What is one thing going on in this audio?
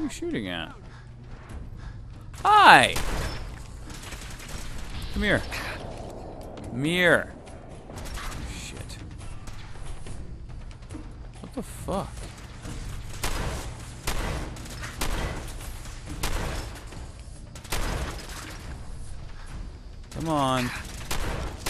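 A laser rifle fires rapid, sharp zapping shots.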